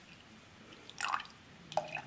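Liquid pours into a mug.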